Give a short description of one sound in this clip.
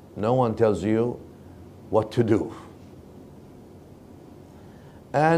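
A middle-aged man speaks calmly into a clip-on microphone, in short phrases with pauses.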